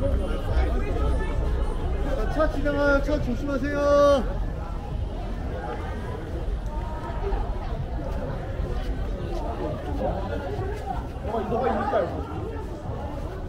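Young men and women chat and call out nearby in a lively street crowd.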